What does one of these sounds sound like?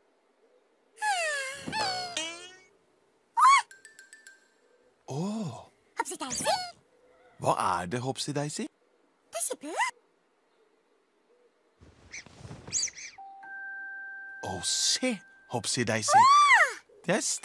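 A young woman speaks in a high, playful voice, close by.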